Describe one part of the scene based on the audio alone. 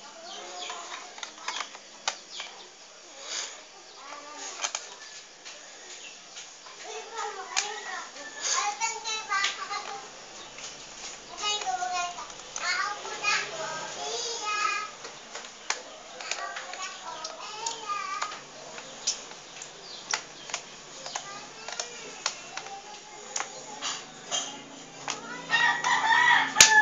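Fingers tap and click on a hard plastic case.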